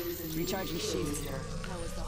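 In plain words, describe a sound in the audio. A charging device hums with an electric whine.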